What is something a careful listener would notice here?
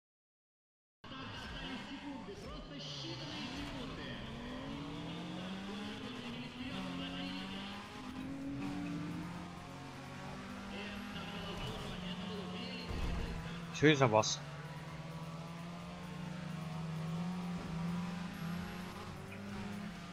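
A racing car engine revs hard, rising and falling through gear changes.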